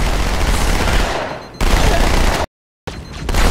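A gun fires in loud rapid bursts.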